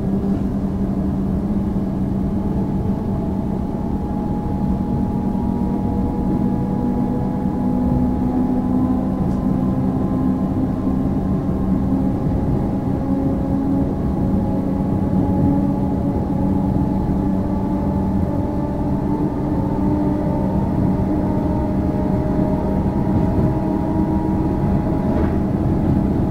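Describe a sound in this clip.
A train rumbles and hums steadily along the tracks, heard from inside a carriage.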